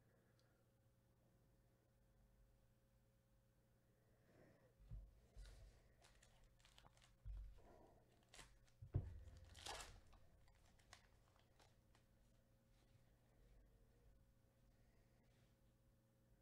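Gloved hands shuffle and slide trading cards.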